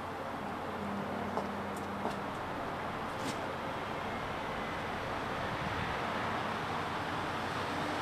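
Footsteps shuffle on a paved path.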